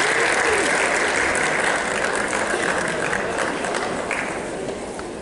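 A heavy stage curtain swishes as it slides shut.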